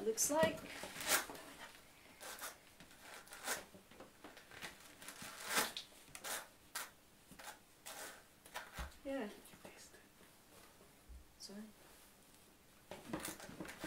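Wire carding brushes scrape through wool in short strokes.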